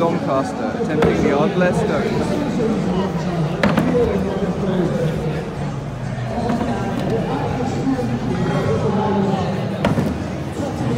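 A heavy stone thuds onto a wooden barrel.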